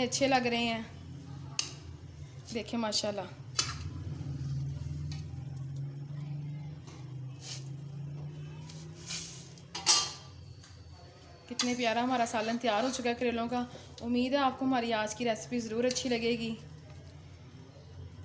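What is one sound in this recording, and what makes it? A metal spoon scrapes and clinks against a pot.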